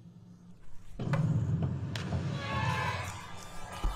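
A diver plunges into a pool with a splash.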